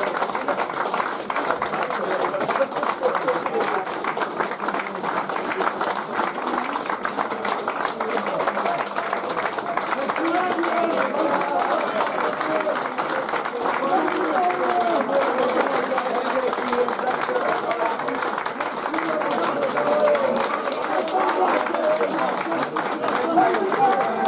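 Men in the crowd cheer and call out nearby.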